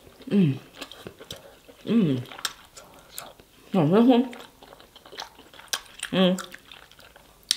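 Fingers squelch through thick sauce.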